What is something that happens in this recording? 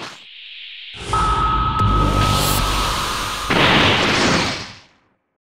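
A deep rushing roar swells as an energy burst powers up.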